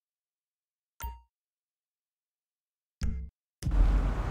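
A short electronic menu blip sounds.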